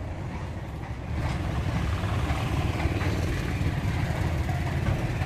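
A long freight train rumbles steadily along the tracks in the distance.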